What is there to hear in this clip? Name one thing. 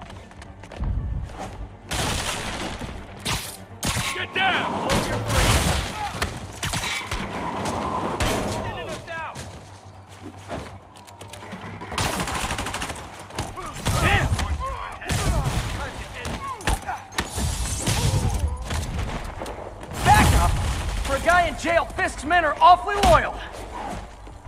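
Punches and kicks thud against bodies in a fight.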